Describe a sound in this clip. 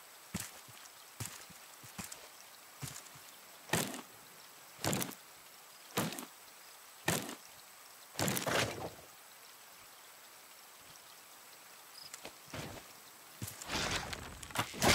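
Footsteps swish through grass at a steady pace.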